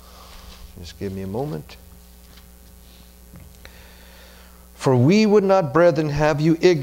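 A man speaks into a microphone in a calm, measured voice.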